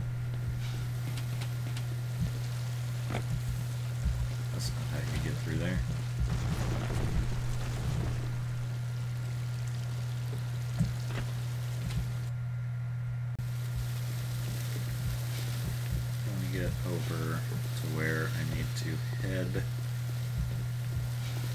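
Water sprays and patters down from a burst pipe.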